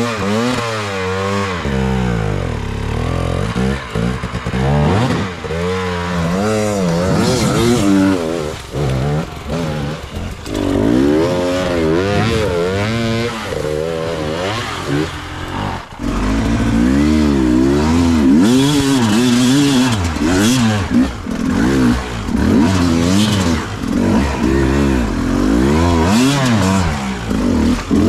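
A dirt bike engine revs up and down close by, climbing hard.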